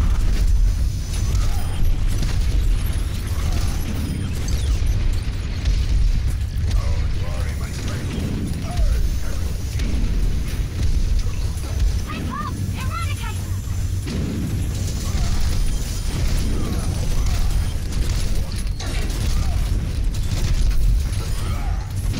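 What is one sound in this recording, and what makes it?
Heavy explosions boom and rumble.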